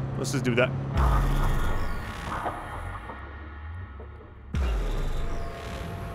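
A glitchy electronic burst crackles and whooshes.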